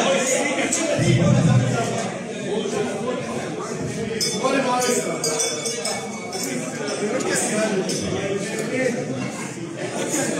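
A crowd of men and women chatter loudly in an echoing room.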